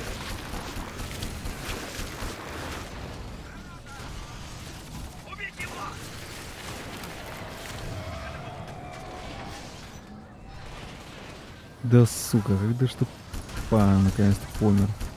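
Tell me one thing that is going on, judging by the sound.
Futuristic weapons fire in rapid blasts.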